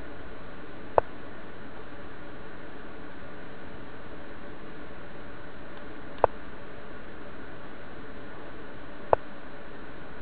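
A short sharp click sounds each time a chess piece is moved.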